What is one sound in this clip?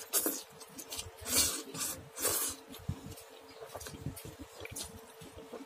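A man slurps noodles loudly close by.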